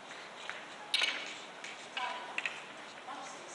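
Billiard balls click against each other.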